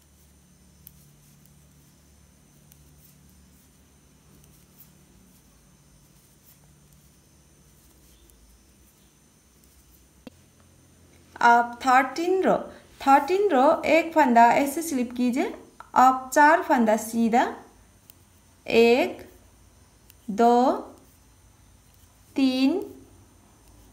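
Metal knitting needles tick and scrape softly against each other.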